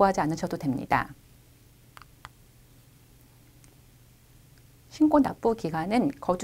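A woman speaks calmly and clearly into a close microphone, pausing briefly.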